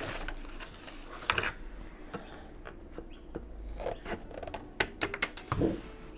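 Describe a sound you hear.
Small objects knock and tap on a table close by.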